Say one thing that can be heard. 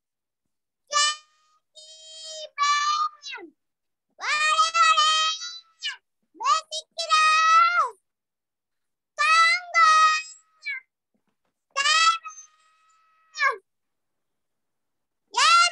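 A young girl sings loudly through an online call.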